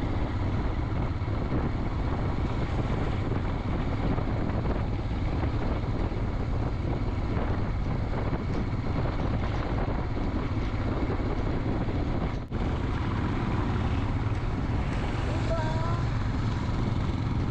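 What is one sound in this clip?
A motorcycle engine thrums steadily up close.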